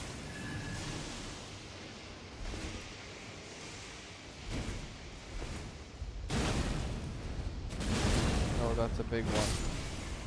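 A monster growls and roars loudly.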